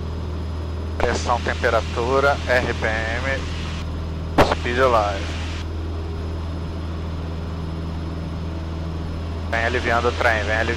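A pilot speaks calmly over a headset intercom.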